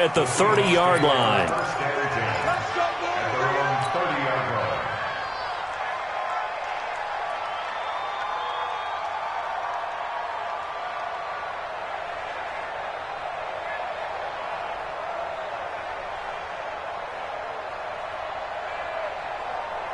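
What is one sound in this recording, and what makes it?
A large stadium crowd roars and cheers steadily.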